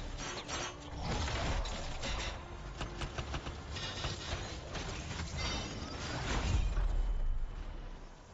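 Heavy explosions boom and crackle.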